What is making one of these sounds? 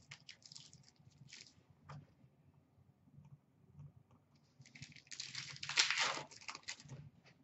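Cardboard packs rustle and crinkle in hands.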